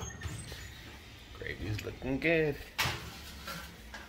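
An oven door clanks open.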